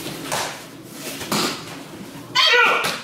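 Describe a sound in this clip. Bodies roll and thump onto a padded mat.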